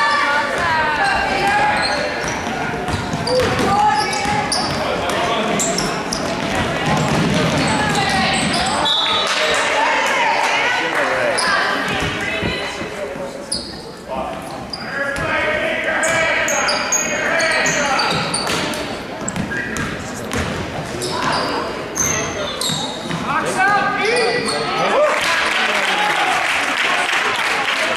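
Spectators talk and cheer loudly nearby.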